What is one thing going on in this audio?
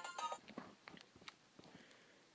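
Fingers click buttons on a handheld game console.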